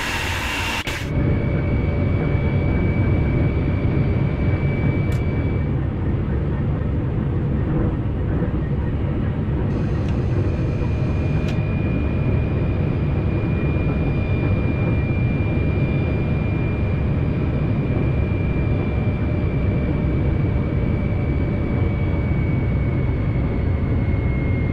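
A train rumbles steadily along the rails, heard from inside the cab.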